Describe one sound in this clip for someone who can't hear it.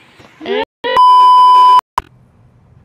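A steady high beep sounds.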